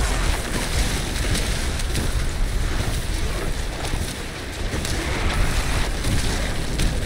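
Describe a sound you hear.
Frost shards shatter with sharp clinks.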